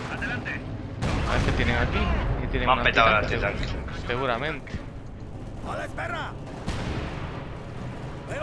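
Explosions boom in a battle.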